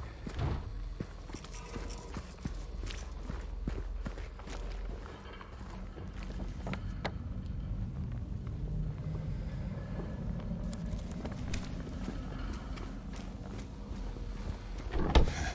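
Footsteps crunch over debris on hard ground.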